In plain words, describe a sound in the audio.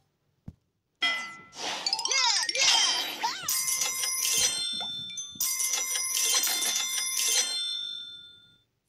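Bright chiming tones ring out as a score tallies up.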